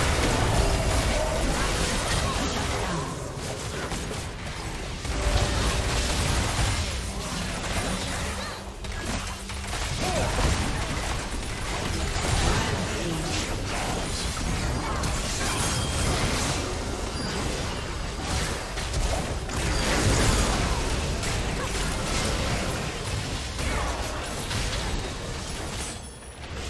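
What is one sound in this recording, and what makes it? Spell blasts and hits crackle and boom in a fast fight.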